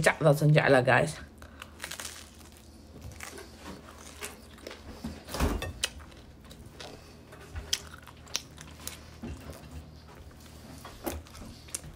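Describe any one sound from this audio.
A young woman chews and munches food close by.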